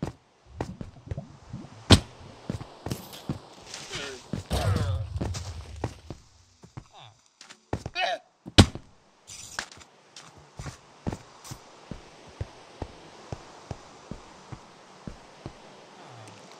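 Blocks crunch and break in quick, repeated knocks as they are dug out in a video game.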